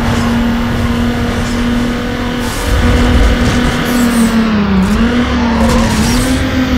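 A car engine drones steadily at high revs, dipping briefly in pitch.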